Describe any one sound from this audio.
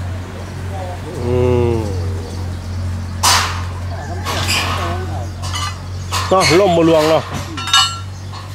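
A man calls out nearby.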